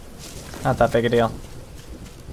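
A young man speaks briefly and close into a microphone.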